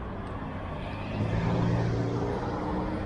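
A truck engine rumbles close by.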